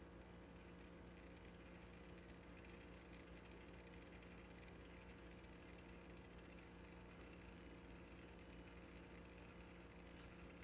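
An old horn phonograph plays a faint, scratchy recording.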